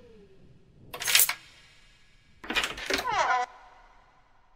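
A key turns in a door lock.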